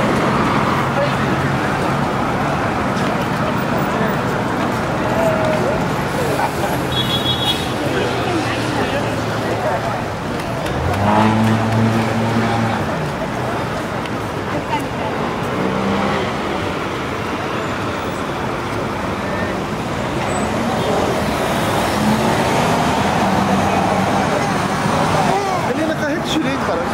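City traffic hums and rushes past steadily outdoors.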